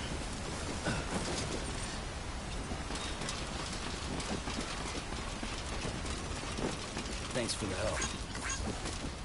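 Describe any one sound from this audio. Metal ladder rungs clank under climbing feet.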